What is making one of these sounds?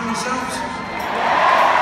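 A large crowd cheers and sings along far off.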